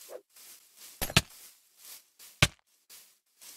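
Sharp hits thud as an axe strikes a creature.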